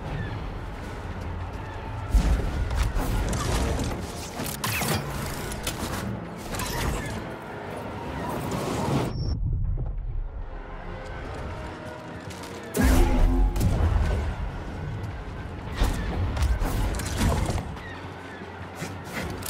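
A lightsaber hums and swishes through the air.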